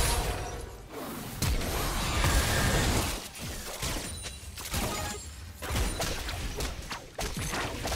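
Game spell effects crackle and bang in a fast fight.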